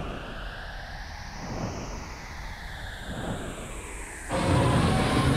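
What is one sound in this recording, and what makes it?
A large winged creature whooshes through the air.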